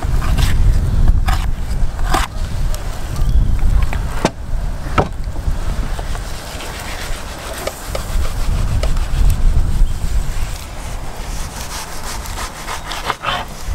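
A knife slices through raw meat.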